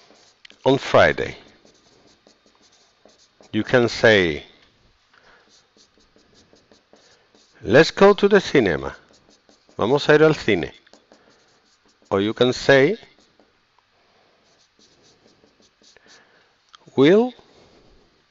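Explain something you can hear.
A man speaks in short, clear phrases close to a headset microphone, with pauses between them.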